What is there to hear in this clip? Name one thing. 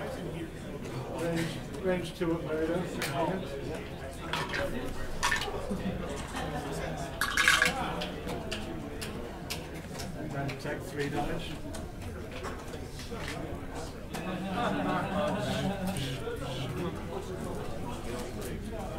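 Plastic game pieces click and tap on a table.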